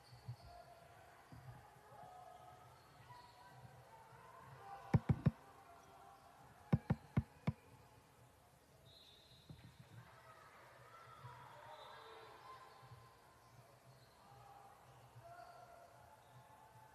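Sneakers squeak on a court.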